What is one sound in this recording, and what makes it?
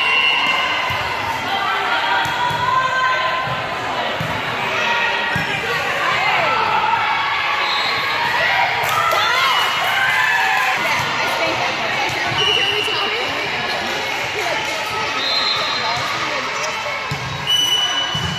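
A referee's whistle blows short shrill blasts.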